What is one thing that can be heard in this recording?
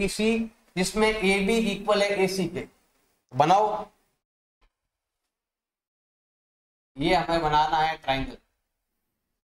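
A man explains calmly into a close microphone, in short bursts with pauses.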